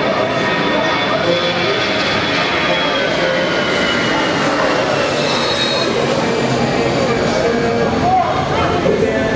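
Men shout and call out to each other across an open outdoor field.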